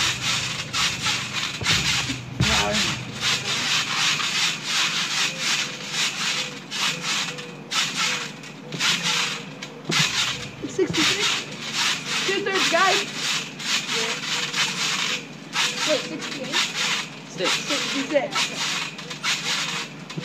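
A trampoline mat thumps and creaks as children bounce on it.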